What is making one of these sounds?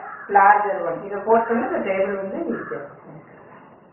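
A middle-aged woman speaks calmly and clearly close by.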